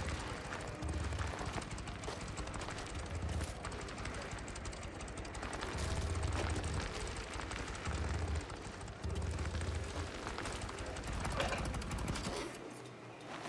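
A motorcycle engine rumbles and revs while riding over a dirt track.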